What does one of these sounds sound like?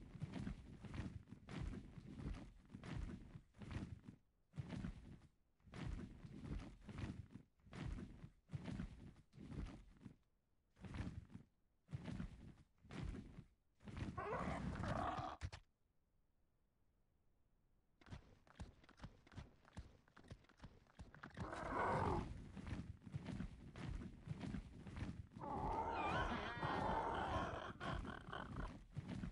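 Large leathery wings beat in a steady rhythm.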